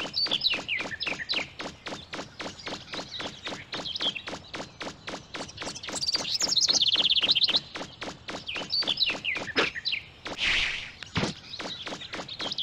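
Quick footsteps thud in a steady running rhythm.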